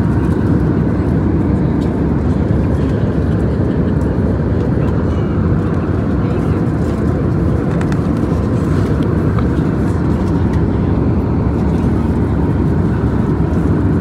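A steady low engine drone fills an aircraft cabin.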